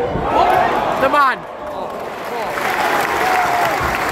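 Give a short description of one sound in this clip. A crowd roars and cheers.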